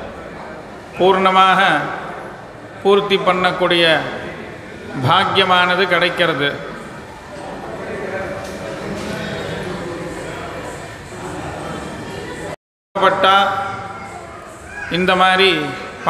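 A man chants in a melodic voice through a microphone.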